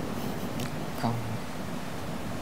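A young man murmurs briefly nearby.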